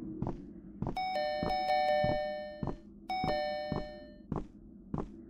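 A short bright chime jingle plays twice.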